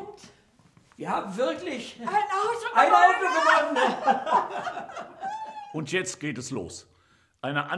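An elderly woman exclaims with animation.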